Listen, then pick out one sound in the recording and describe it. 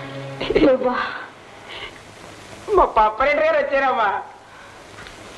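A woman speaks in reply.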